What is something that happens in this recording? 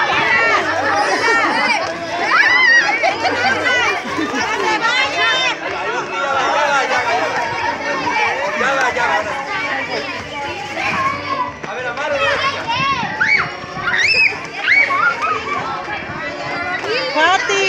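Several women talk and laugh loudly nearby.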